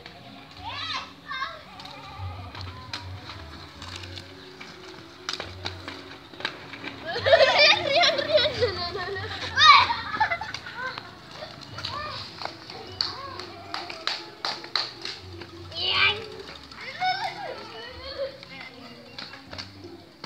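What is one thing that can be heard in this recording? Inline skate wheels roll and rumble on rough concrete.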